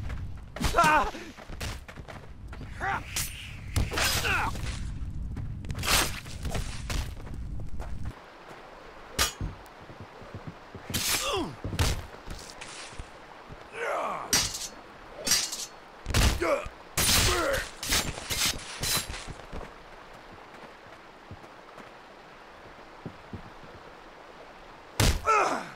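Metal blades strike and clash in a fight.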